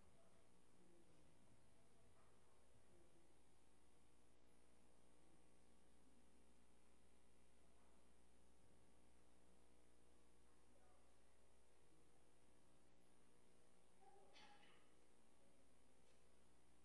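Papers rustle faintly.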